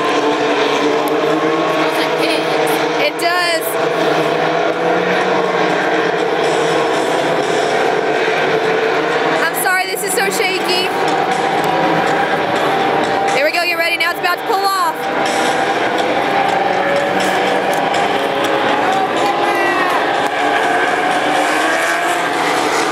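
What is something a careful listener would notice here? Race car engines roar steadily around a track.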